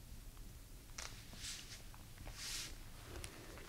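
A young woman breathes softly close to a microphone.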